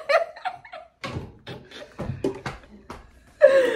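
Two young women laugh close by.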